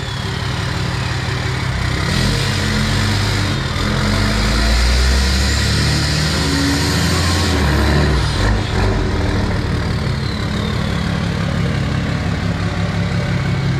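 A truck engine idles with a deep, loud rumble.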